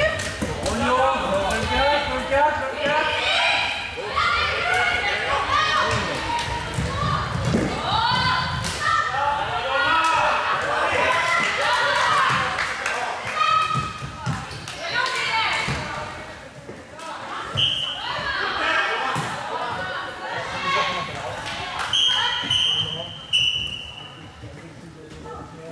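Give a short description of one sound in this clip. Spectators chatter and cheer.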